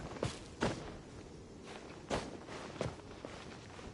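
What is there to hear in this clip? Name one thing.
Short swooshing leaps and scrambles sound against rock.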